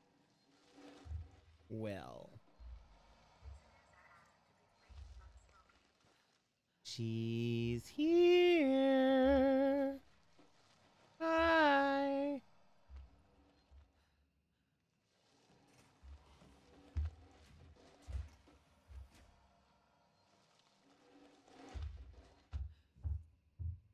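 A young man talks into a microphone in a quiet, hesitant voice.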